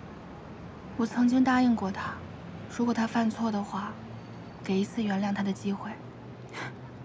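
A young woman speaks calmly and seriously, close by.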